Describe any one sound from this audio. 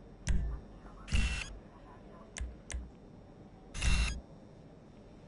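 A soft game menu whoosh sounds twice.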